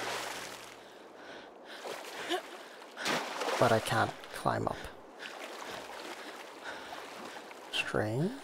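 Water splashes softly as a swimmer paddles through it.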